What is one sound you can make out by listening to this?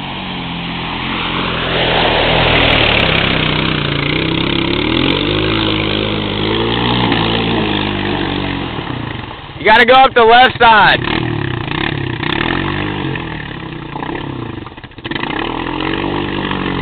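An engine revs and sputters close by.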